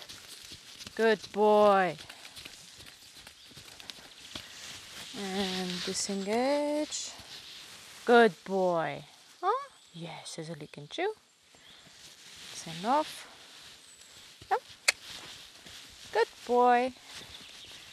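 A young woman calls out to a horse in short, sing-song bursts.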